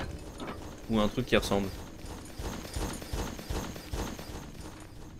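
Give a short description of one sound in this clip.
A man talks briefly into a headset microphone.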